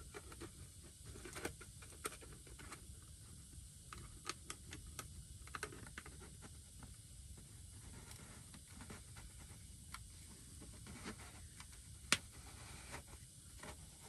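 A plastic bottle creaks as it is screwed onto a fitting.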